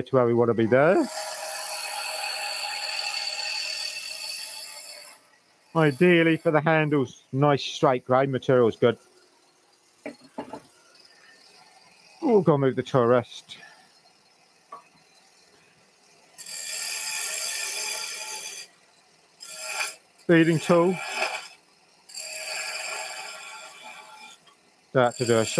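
A chisel scrapes against wood spinning on a lathe.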